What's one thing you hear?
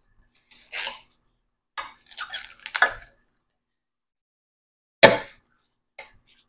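A knife slices through a watermelon with wet, crunchy cracks.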